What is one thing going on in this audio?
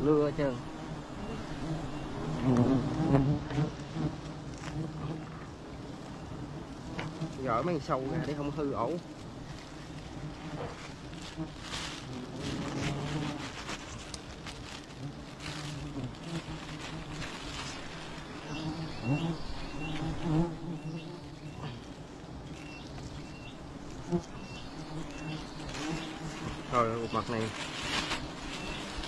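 Bees buzz in a swarm close by.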